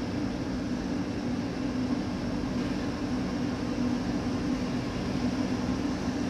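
Wheels rumble and clatter over the track.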